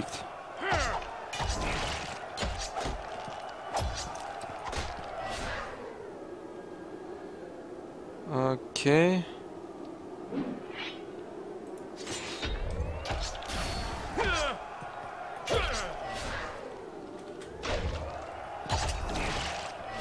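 Swords clash and strike in combat.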